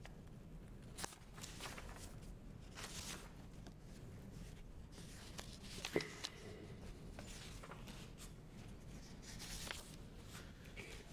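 Paper rustles softly as pages are handled.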